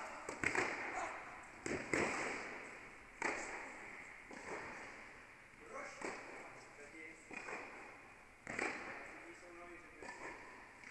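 Tennis balls are struck with sharp pops that echo around a large indoor hall.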